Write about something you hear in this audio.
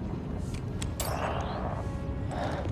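A hologram fizzles out with a brief crackling hiss.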